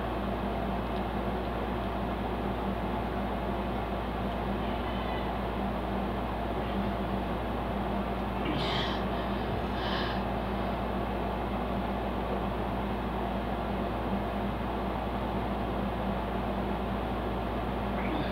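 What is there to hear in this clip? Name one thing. A young woman gulps water.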